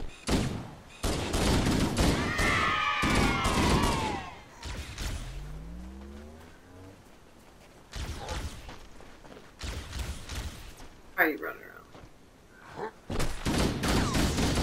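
Rapid gunfire from a video game rattles in bursts.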